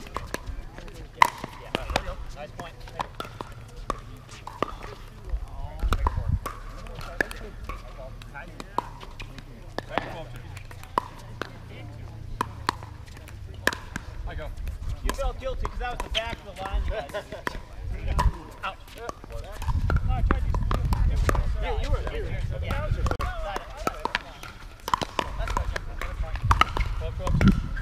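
Paddles strike a plastic ball with sharp hollow pops.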